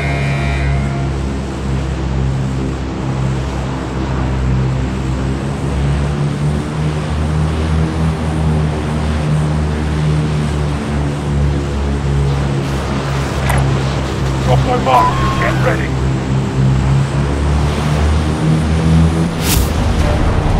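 A large propeller plane's engines drone steadily.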